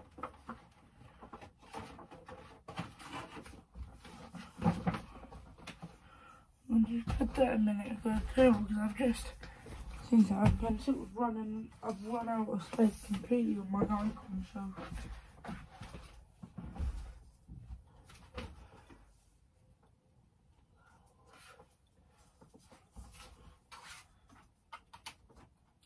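Small objects clatter and knock as they are handled.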